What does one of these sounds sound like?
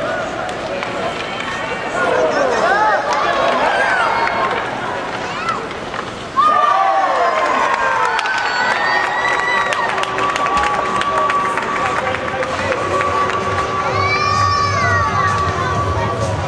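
Ice skates scrape and swish across the ice.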